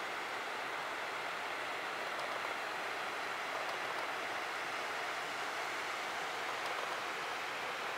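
A shallow stream trickles and babbles over rocks.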